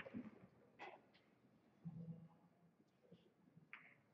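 Pool balls click together on a table.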